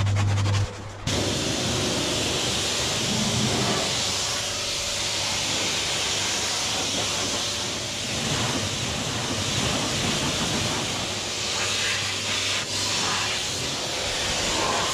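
A pressure washer sprays water hard against a wheel.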